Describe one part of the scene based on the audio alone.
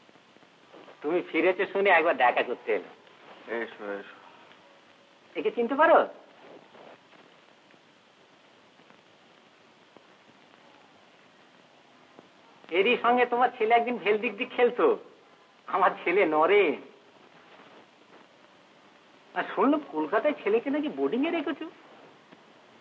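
A second man answers calmly, close by.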